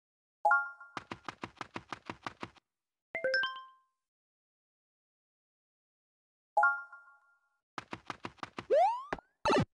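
Quick, light game footsteps patter in a steady run.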